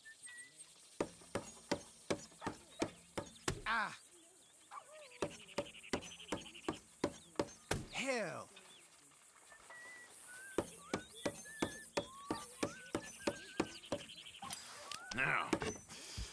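A knife taps rapidly against a wooden table in quick bursts.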